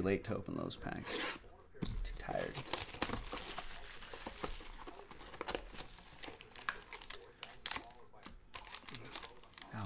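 Plastic wrapping crinkles and tears as a box is opened.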